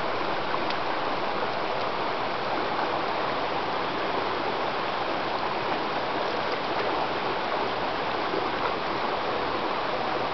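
A dog splashes through shallow water.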